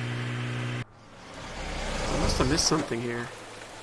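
Rain falls outdoors.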